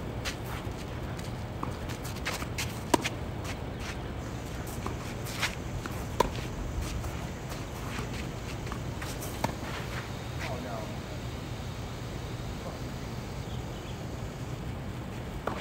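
Sneakers scuff and squeak on a hard court.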